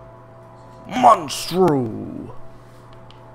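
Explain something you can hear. A monster lets out a loud, deep roar.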